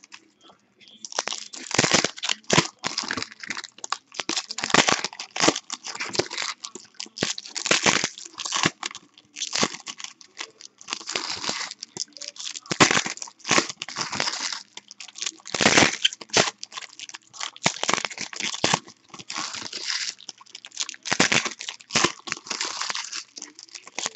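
Foil wrappers crinkle and rustle as hands tear packs open.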